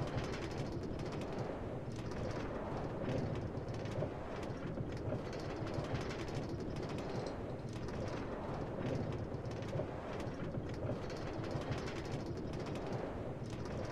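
A cart rumbles and clatters steadily along metal rails.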